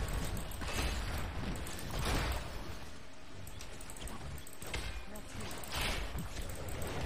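Game characters clash in battle with bursts of spell effects and hits.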